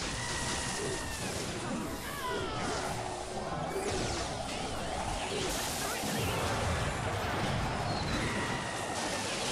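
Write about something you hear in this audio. Game sound effects chime, whoosh and clash.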